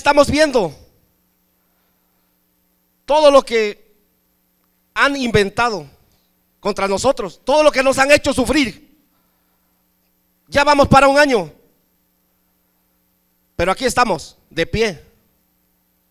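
A middle-aged man speaks into a microphone in short, halting phrases with long pauses.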